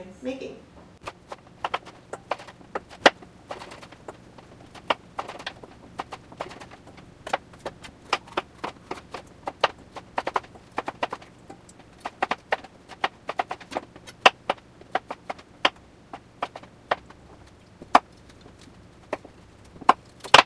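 A knife chops vegetables on a cutting board with quick taps.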